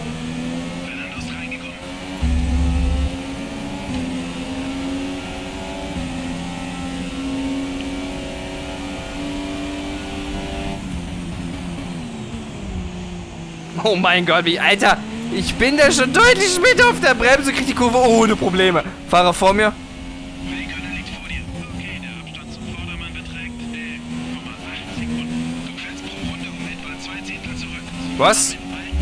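A racing car engine whines steadily, rising and falling in pitch as the car speeds up and slows down.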